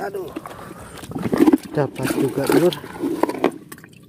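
A fish drops into a plastic bucket with water.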